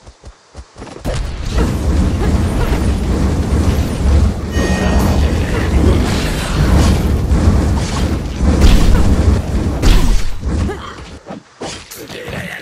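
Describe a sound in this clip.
Loud fighting sounds of blows and magic blasts clash without pause.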